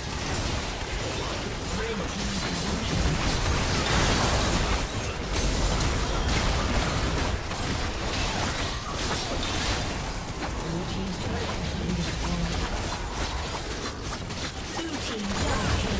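Magic blasts crackle and burst in a hectic fight.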